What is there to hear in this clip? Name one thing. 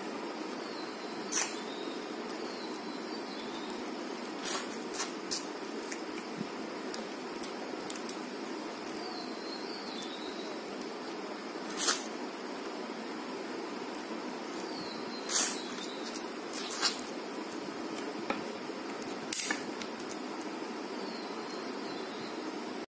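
A young woman chews food with soft, wet mouth sounds close by.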